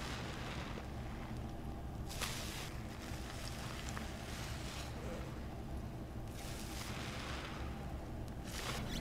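Foam crackles and fizzes.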